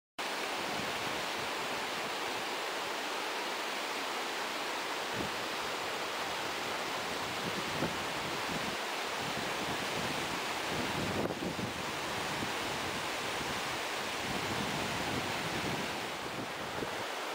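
A mountain stream rushes steadily over rocks close by.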